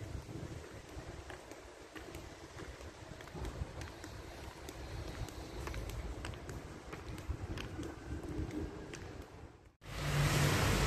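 High heels click steadily on a concrete floor.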